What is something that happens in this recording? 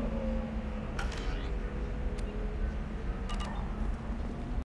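Game menu sounds chime and click as options are selected.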